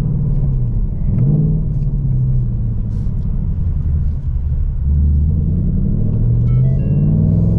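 A car engine revs up as the car pulls away.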